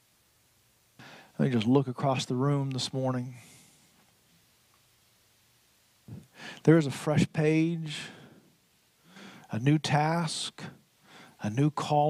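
A middle-aged man speaks calmly through a headset microphone, pausing between phrases.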